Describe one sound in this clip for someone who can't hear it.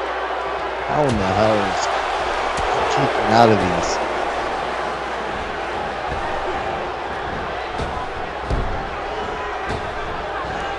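Heavy thuds of bodies hitting a wrestling ring sound now and then.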